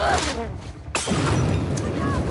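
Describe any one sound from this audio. A glass bottle smashes and shatters.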